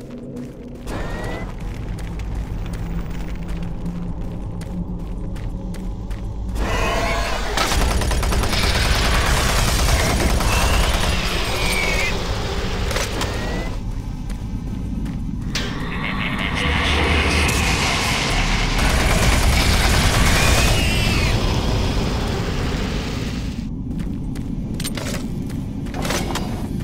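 A low mechanical hum drones steadily.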